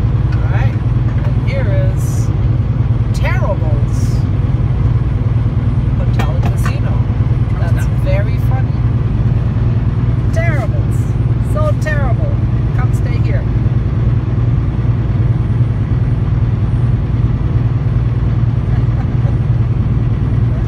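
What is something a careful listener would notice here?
A car engine hums steadily with a low road rumble from inside a moving vehicle.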